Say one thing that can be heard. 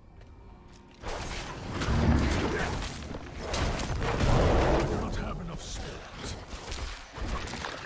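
Game weapons clash and magic blasts boom in a fight.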